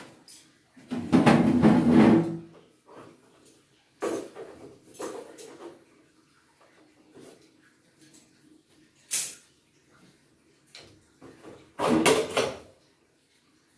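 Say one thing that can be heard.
A metal chair scrapes on the floor.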